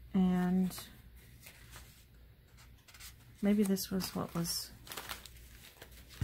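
Paper cards rustle and shuffle as hands flip through them.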